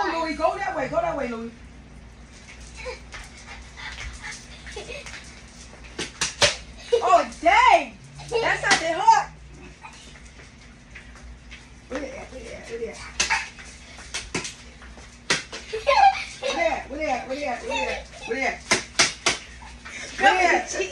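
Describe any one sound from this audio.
Young girls laugh and squeal excitedly close by.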